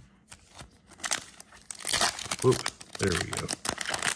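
A foil wrapper crinkles and tears as hands pull it open.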